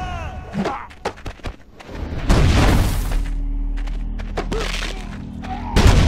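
Heavy blows thud as two men grapple.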